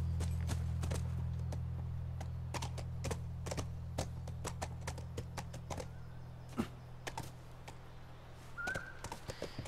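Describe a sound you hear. Horse hooves clop and thud on dirt.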